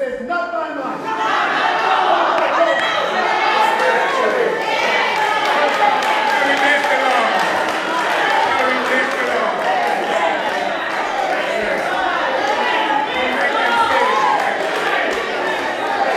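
A congregation of men and women calls out and cheers in response.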